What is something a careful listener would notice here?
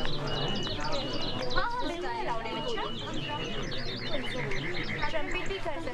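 Young women chatter in a crowd outdoors.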